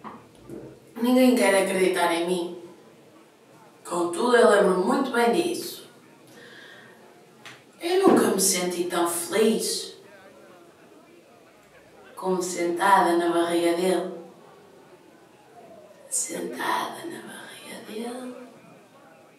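A young woman sings close by in short phrases, with pauses in between.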